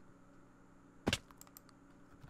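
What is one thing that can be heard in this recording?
A game character hits the ground hard with a short thud.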